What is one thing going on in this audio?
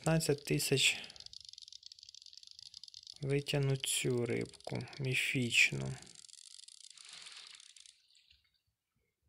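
A fishing reel whirs steadily as line is wound in.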